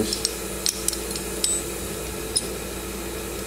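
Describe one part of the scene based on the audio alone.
Metal parts click and tap against each other close by.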